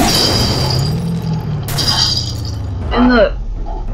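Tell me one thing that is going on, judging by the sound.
A truck engine roars.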